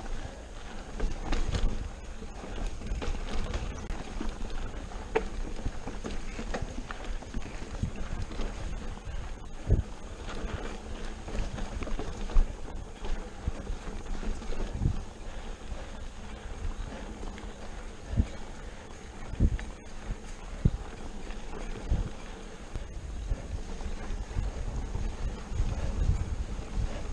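A bicycle frame knocks and clatters over bumps.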